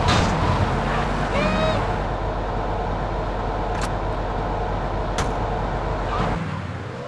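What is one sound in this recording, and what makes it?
A car engine rumbles steadily.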